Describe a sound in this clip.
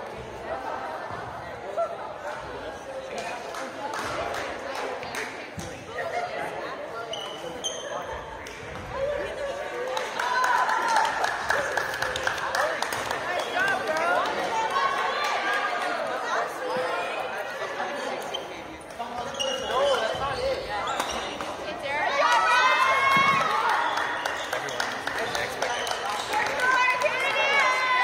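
Young players chatter and call out across an echoing hall.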